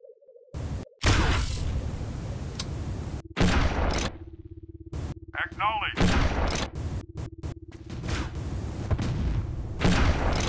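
A gun fires loud energy blasts in quick bursts.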